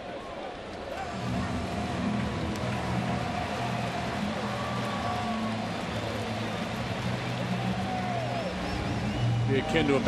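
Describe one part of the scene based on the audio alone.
A large crowd cheers and claps outdoors.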